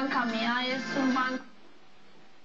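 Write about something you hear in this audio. A woman speaks calmly through a television loudspeaker.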